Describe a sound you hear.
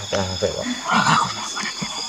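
Leaves rustle as hands push through plants.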